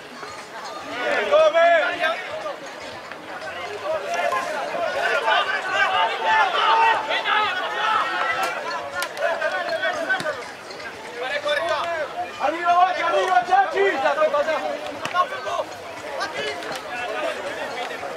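A crowd of spectators shouts and cheers in the distance outdoors.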